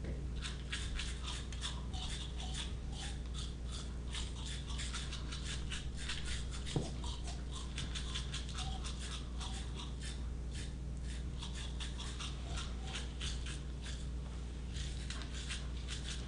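A man makes fast, rhythmic clicking and hissing mouth sounds through a microphone.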